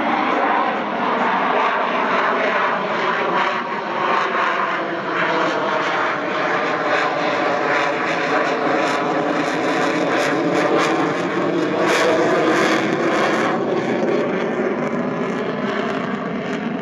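A jet engine roars loudly overhead, its pitch slowly shifting as the jet passes.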